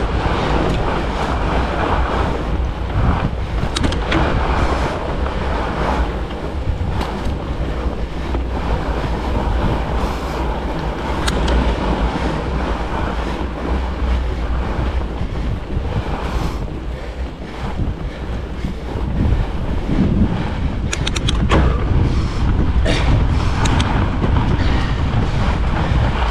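Wind rushes steadily over a microphone outdoors.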